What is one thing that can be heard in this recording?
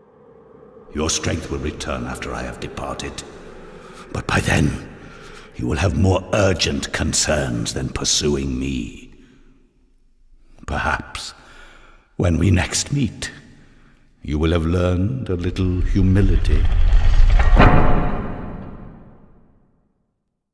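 A man speaks slowly in a deep, solemn voice, close by.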